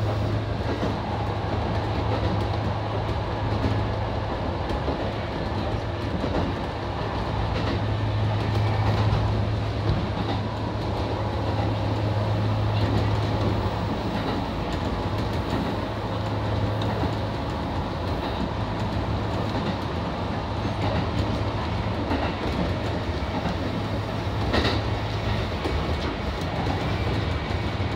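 Train wheels rumble and clack over the rails.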